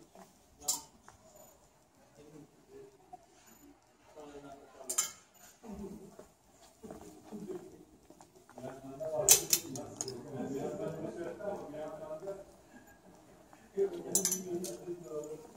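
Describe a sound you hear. Clothes hangers clack on a metal rail.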